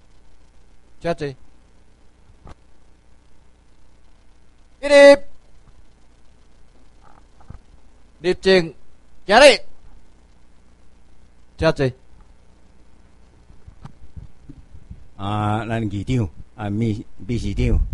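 An elderly man speaks slowly and with pauses through a microphone in a room with some echo.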